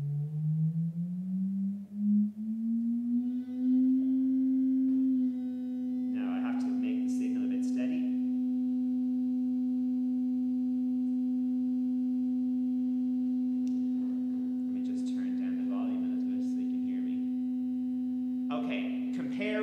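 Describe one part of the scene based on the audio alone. An electronic tone hums, rising in pitch and then holding steady.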